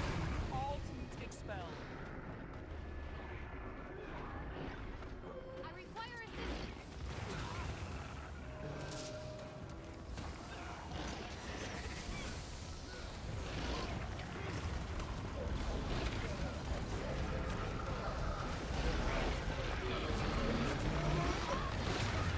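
Fantasy battle sound effects clash, whoosh and boom.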